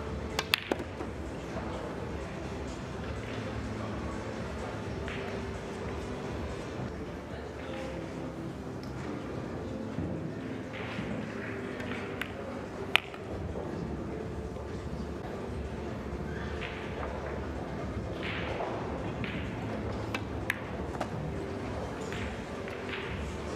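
Pool balls knock together on the table.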